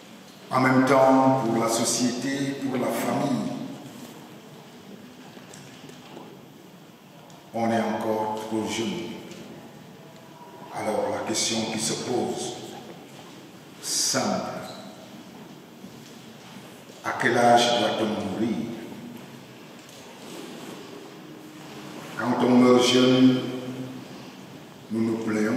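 A man speaks calmly into a microphone in pauses, in a room with some echo.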